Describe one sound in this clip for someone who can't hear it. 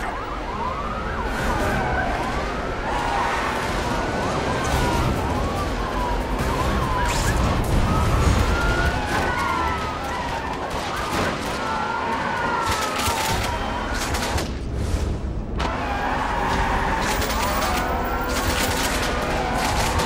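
A police siren wails up and down.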